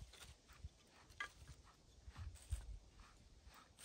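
Small pieces of wood knock softly together.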